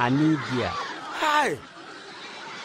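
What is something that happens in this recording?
A man shouts with alarm.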